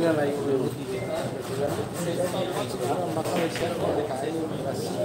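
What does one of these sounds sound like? A crowd of young men chatters nearby.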